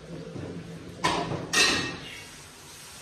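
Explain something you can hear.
Dishes clatter in a sink.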